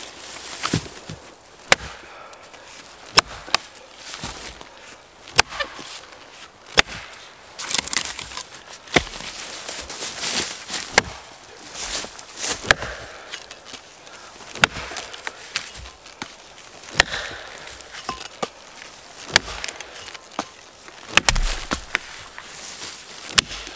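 An axe chops sharply into a log.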